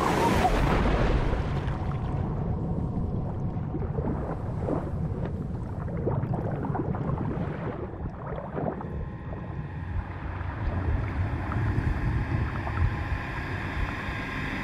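Bubbles gurgle and rumble underwater.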